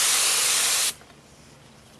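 A spray gun hisses loudly.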